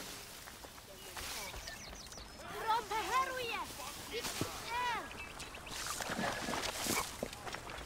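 Tall grass rustles as a figure pushes through it.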